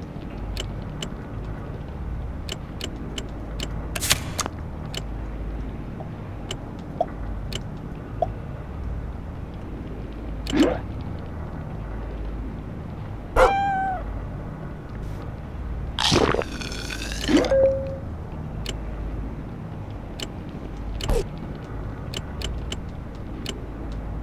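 Short game menu clicks and chimes sound as menus open and close.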